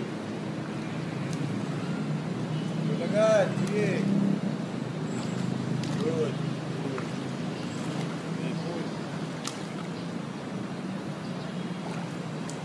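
Water splashes softly as a child swims on his back.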